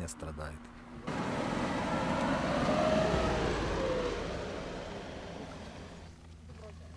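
An armoured vehicle rumbles past.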